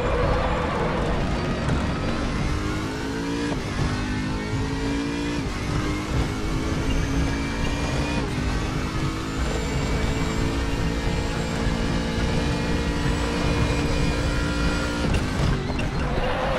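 A racing car engine roars and rises in pitch through the gears.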